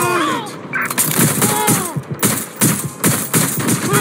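An electric stun gun crackles and zaps in short bursts.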